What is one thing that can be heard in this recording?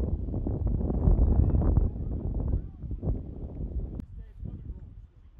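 Wind blusters against the microphone outdoors.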